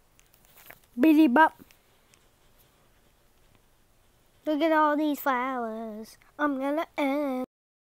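A young child squeals and sings loudly close by.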